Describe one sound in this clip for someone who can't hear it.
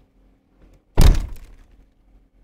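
A car door clunks open.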